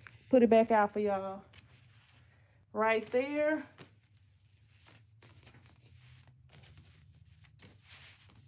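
Paper and fabric rustle softly as hands smooth them flat.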